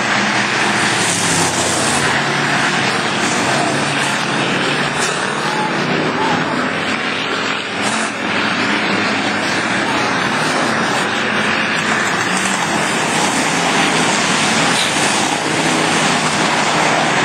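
Race car engines roar loudly around a dirt track outdoors.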